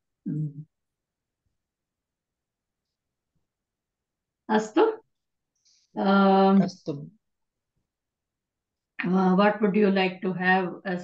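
A woman speaks over an online call, with pauses.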